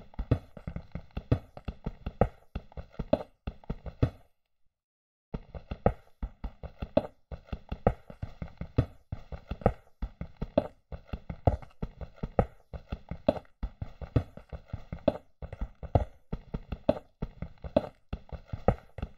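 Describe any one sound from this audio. A pickaxe chips rapidly and repeatedly at stone blocks.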